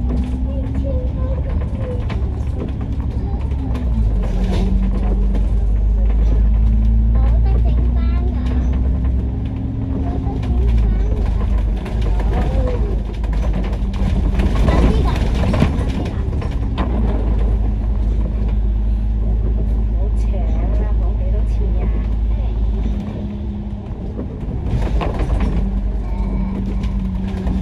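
A bus engine rumbles and hums steadily from inside the bus.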